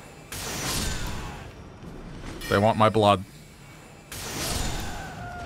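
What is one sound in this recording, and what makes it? A magic spell whooshes with a bright shimmer.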